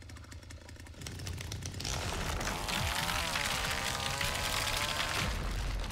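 A chainsaw roars and revs loudly.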